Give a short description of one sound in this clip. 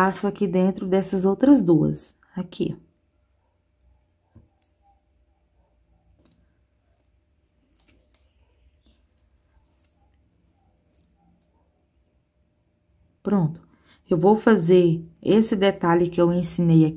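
Small plastic beads click softly against each other.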